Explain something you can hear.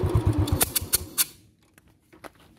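A motorcycle engine cuts out, leaving near silence.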